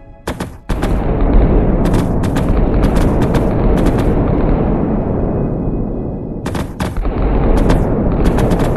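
A deep explosion rumbles and roars on and on.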